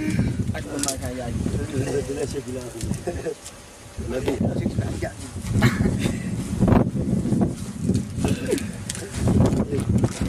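Young men talk and laugh close by, outdoors.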